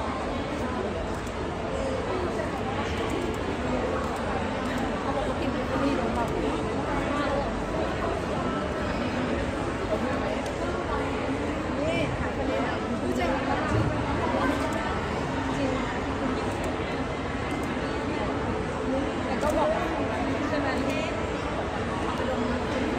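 A woman answers close by.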